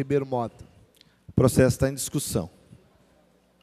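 A man speaks briefly over a microphone.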